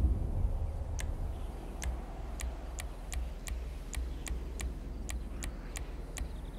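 Soft menu clicks tick one after another at a steady pace.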